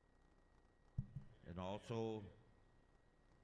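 A man speaks briefly into a microphone, heard over loudspeakers in a large echoing hall.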